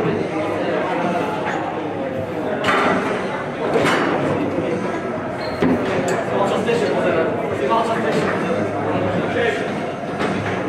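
Foosball rods rattle and knock as players spin and slide them.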